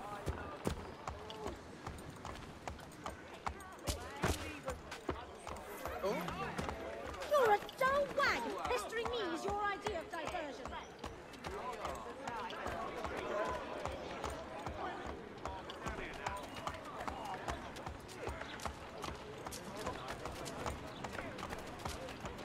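Horse hooves clop steadily on cobblestones.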